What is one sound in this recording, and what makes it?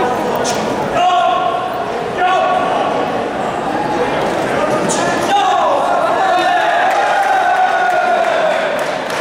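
Several people shout and cheer loudly.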